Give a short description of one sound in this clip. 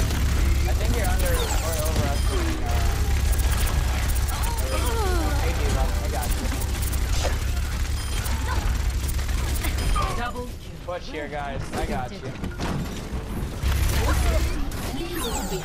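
An electric weapon crackles and buzzes loudly.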